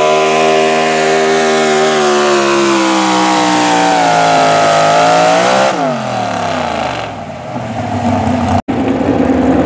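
A pickup truck engine roars loudly at high revs, then winds down.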